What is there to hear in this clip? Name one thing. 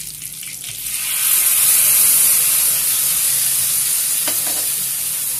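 Liquid pours into hot oil with a loud hiss.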